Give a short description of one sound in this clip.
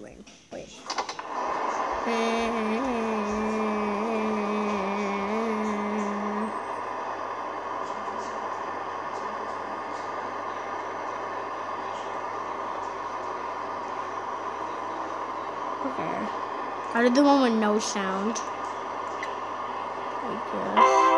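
A game on a tablet plays a low, steady droning ambience.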